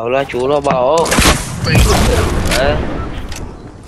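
A rocket explodes with a loud boom.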